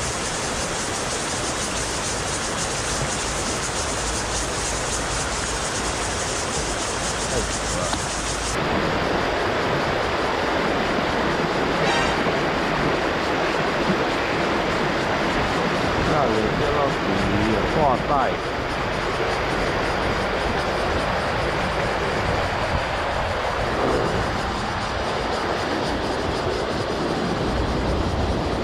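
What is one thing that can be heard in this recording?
A river rushes steadily over stones nearby.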